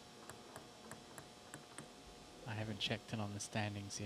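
A table tennis ball bounces on a paddle.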